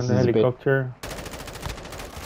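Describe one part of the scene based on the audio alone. A rifle fires rapidly in bursts.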